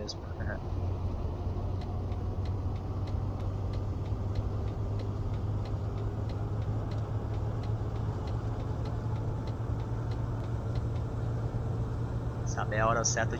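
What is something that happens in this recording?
A turn signal ticks at an even pace.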